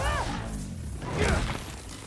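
Electricity crackles and zaps.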